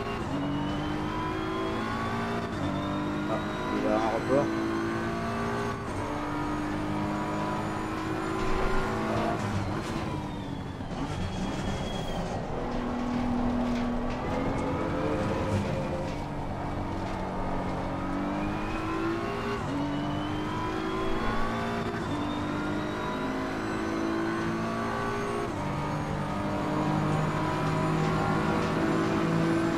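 A race car engine roars, rising and falling in pitch as it shifts gears.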